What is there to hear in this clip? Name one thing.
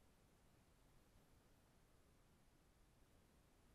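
Wires rustle faintly as fingers twist them together.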